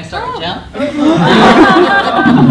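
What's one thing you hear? A group of adults laugh together.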